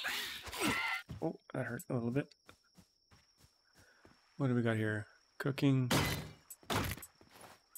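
Sharp hits land on a creature in a fight.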